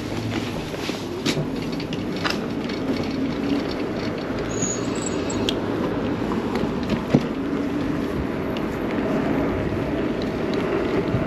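Bike tyres rumble on a paved road.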